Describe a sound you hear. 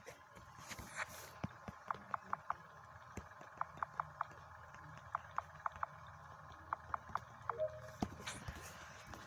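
Short electronic beeps sound in quick succession.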